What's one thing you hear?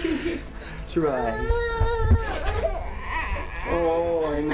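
A young child babbles.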